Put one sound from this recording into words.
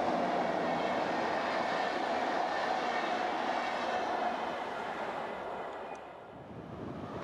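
A passenger train rushes past close by and fades away.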